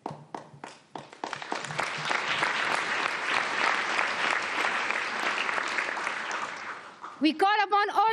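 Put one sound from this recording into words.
A large crowd applauds loudly in a big hall.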